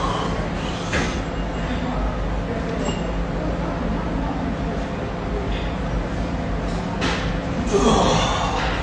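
Barbell plates clank softly as a weight is lifted and lowered.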